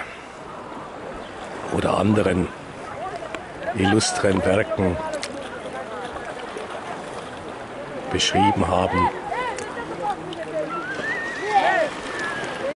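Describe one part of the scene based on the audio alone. Small waves lap and splash gently close by.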